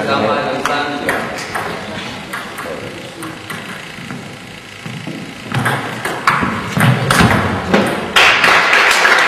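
A table tennis ball clicks back and forth off paddles and the table in an echoing hall.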